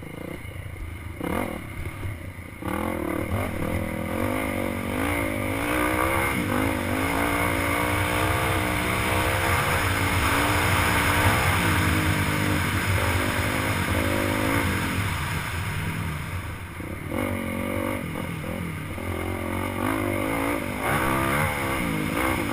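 A dirt bike engine revs and whines up and down close by.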